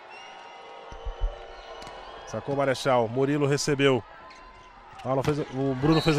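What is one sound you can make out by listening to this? A volleyball is struck with sharp slaps during a rally.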